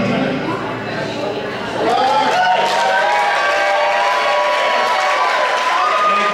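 An acoustic guitar strums steadily.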